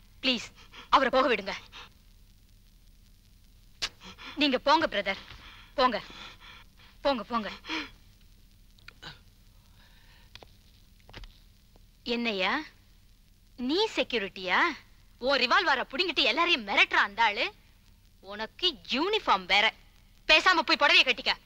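A woman speaks with agitation, close by.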